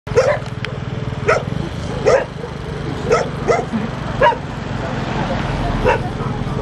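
Dogs bark repeatedly in the background.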